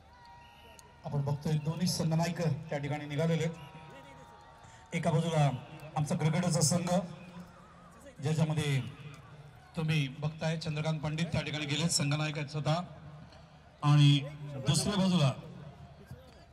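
A man talks loudly on a phone close by.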